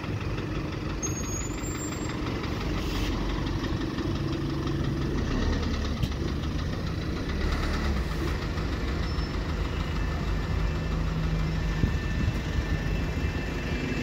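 Traffic hums in the street outdoors.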